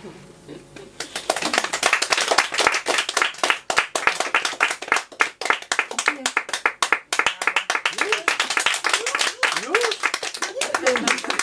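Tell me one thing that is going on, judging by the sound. A woman claps her hands.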